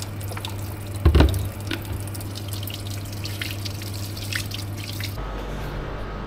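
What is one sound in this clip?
Water runs from a tap and splashes steadily.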